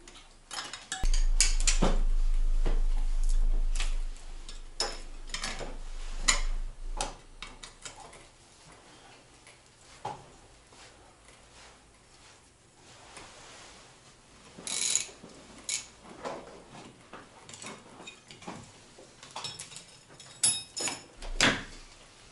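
Metal tools clink and clatter against a motorcycle wheel.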